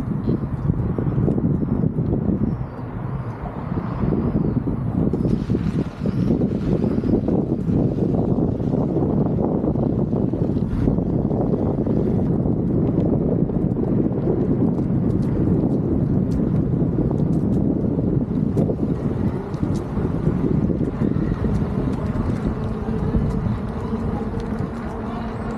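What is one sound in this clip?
Skateboard wheels rumble and clatter over wooden boards and pavement.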